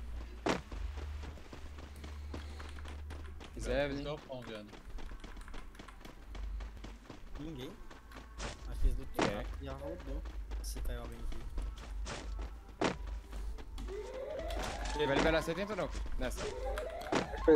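Quick footsteps patter steadily on grass and pavement.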